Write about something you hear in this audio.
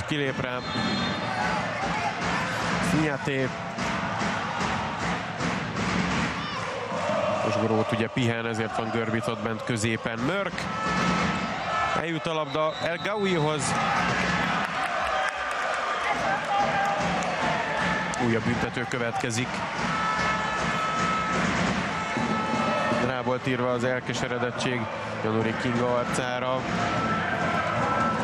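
A large crowd cheers and chants in an echoing arena.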